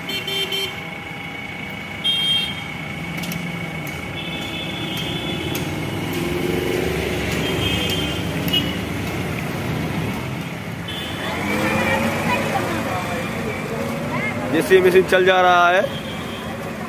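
Vehicle horns honk now and then.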